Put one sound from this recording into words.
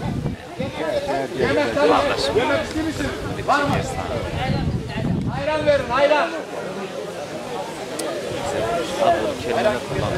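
Elderly men murmur a prayer together close by.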